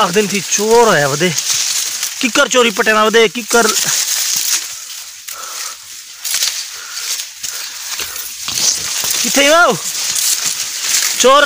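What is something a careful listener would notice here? Dry cane leaves rustle and brush close by.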